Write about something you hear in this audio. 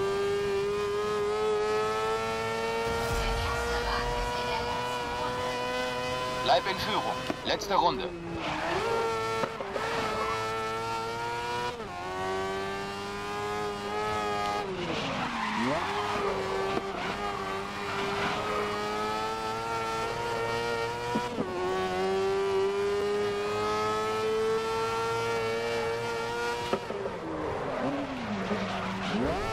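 A racing car engine whines at high revs, dropping in pitch as it brakes and gearshifts, then climbing again.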